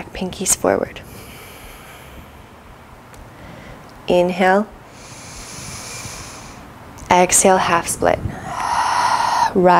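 A woman breathes in and out deeply.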